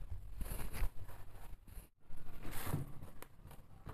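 Plastic wrap crinkles and rustles.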